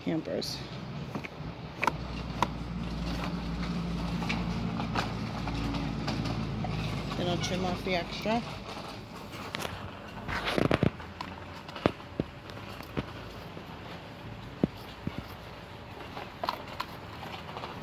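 Fabric rustles and crinkles as a hand moves it.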